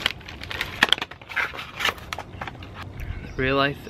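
A small cardboard box is handled with light taps and scrapes.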